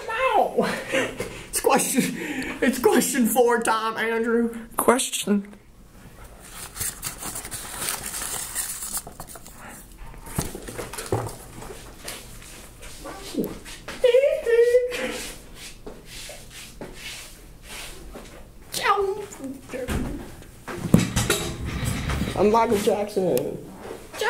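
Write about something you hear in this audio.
A young man talks casually, close by.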